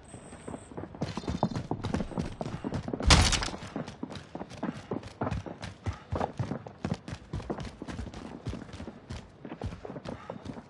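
Quick footsteps thud on a hard floor.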